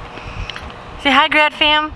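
A little girl calls out in a high voice.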